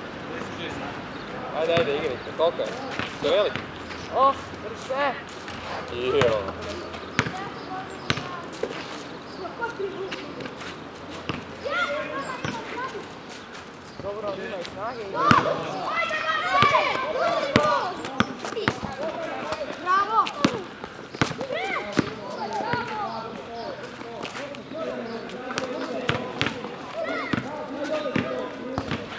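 A basketball bounces on hard asphalt outdoors.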